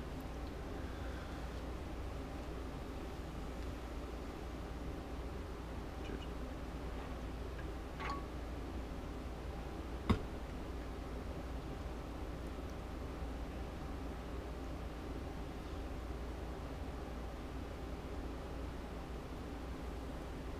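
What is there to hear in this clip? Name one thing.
Thread pulls through fabric with a soft rustle.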